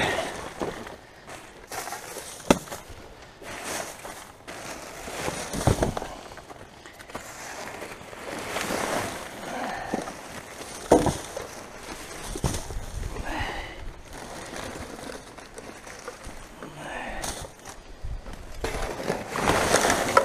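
Plastic bags and wrappers rustle and crinkle as rubbish is stirred.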